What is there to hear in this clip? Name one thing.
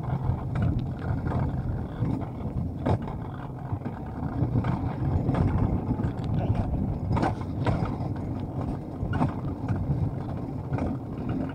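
Wheels of a coaster sled rumble steadily along a metal track.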